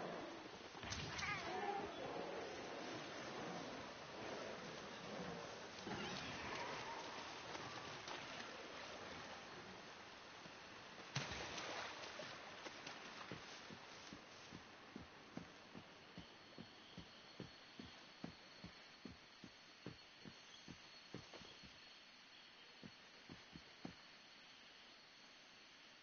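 Magical sparks crackle and fizz in bursts.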